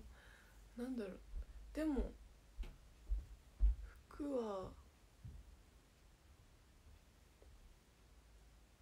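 Hands rustle through long hair.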